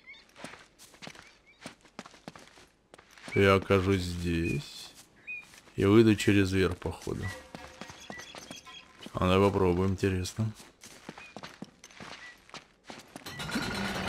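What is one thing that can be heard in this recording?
Footsteps patter quickly on stone and grass.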